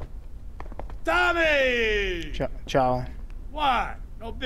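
A man calls out loudly and greets with animation.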